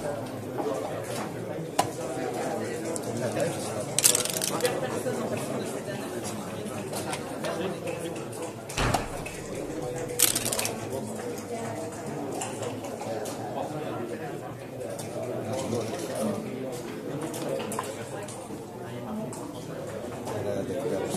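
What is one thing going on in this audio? Plastic game pieces click and clack as they are moved on a board.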